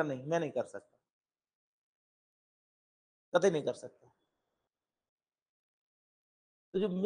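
A middle-aged man speaks calmly and clearly into a microphone, in short phrases with pauses.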